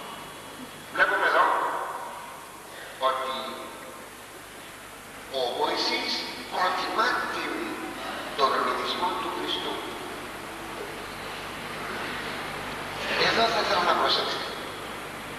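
An elderly man speaks slowly and solemnly through a microphone in a large echoing hall.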